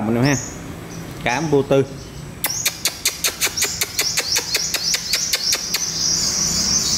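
Small caged birds chirp and trill rapidly, close by.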